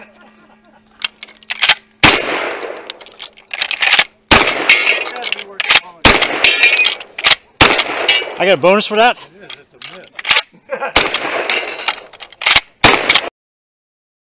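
Gunshots crack one after another outdoors, each followed by a short echo.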